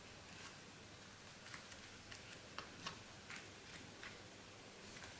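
Hands rub and smooth paper with soft rustles and scrapes.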